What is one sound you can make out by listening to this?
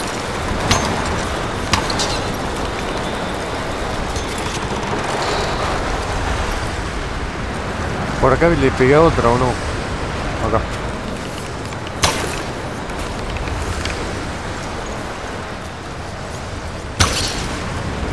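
Arrows are loosed from a bow with sharp snaps.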